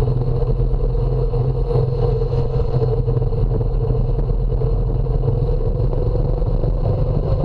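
Wind rushes past a rider's helmet.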